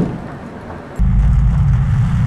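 A van engine hums steadily while driving.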